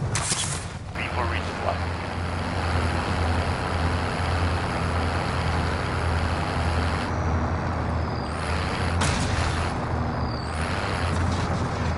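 A heavy truck engine rumbles steadily as the truck drives.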